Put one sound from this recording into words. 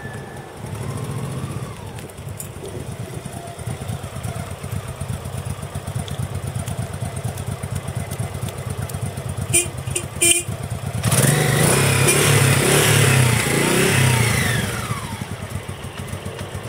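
A V-twin cruiser motorcycle idles with a loping beat.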